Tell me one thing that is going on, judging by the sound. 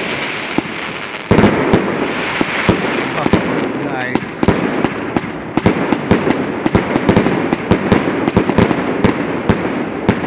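Fireworks fizz and hiss steadily as sparks shower down.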